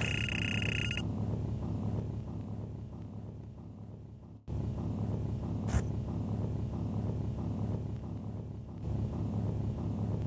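A deep rumble of crumbling stone rolls on steadily.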